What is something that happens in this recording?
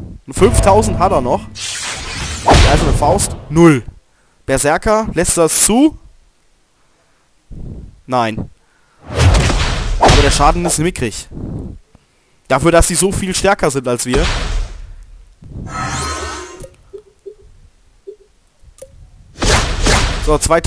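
Fighting blows and energy blasts crash and whoosh.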